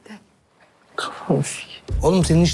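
A man speaks with a grin.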